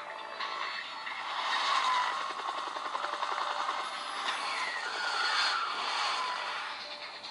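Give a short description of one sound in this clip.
Sound plays from a small phone speaker.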